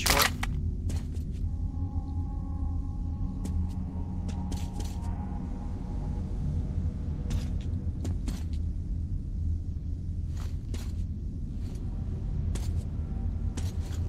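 A gun clicks and clatters as it is handled.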